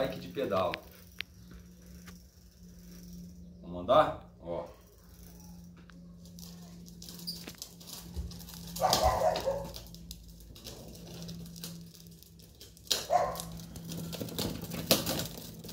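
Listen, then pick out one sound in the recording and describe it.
Small hard wheels roll and scrape over a concrete floor.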